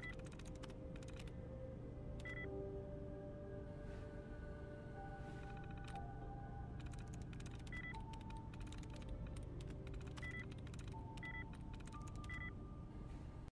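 Keys clatter quickly on an old computer keyboard.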